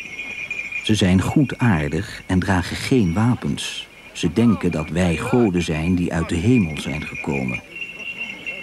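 A man speaks loudly and clearly nearby.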